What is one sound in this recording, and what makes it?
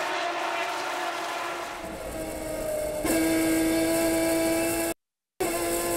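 A race car engine roars loudly from inside the cabin, revving through the gears.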